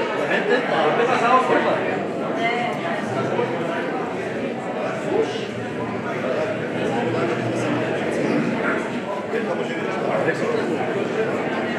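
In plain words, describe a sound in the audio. Several men chatter and talk over one another nearby.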